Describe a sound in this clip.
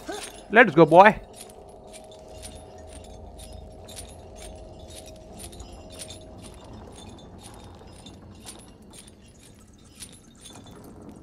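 A metal chain clinks and rattles in a steady rhythm.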